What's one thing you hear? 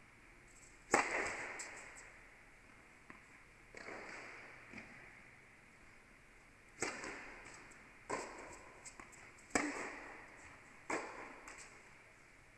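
A tennis ball is struck hard with a racket, echoing through a large hall.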